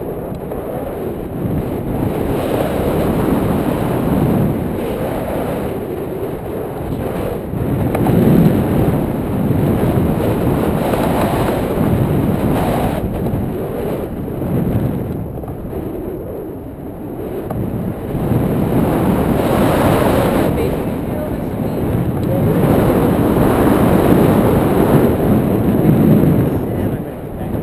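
Wind rushes loudly past, buffeting the microphone throughout.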